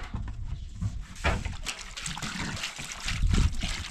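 Water pours and splashes from a jug into a basin.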